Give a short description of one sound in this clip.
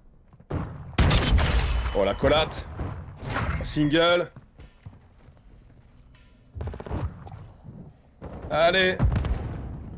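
Shotgun blasts ring out in a game.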